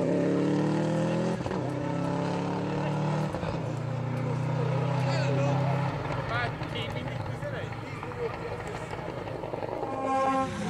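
A rally car engine roars at high revs and changes gear as the car speeds away.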